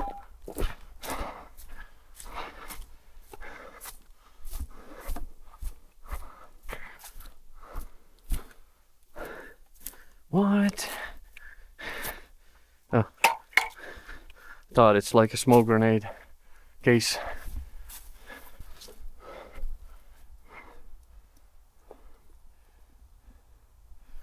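Footsteps crunch through dry leaves and straw.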